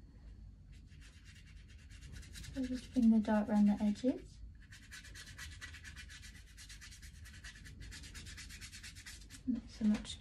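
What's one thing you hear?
A paintbrush brushes and scratches softly on paper.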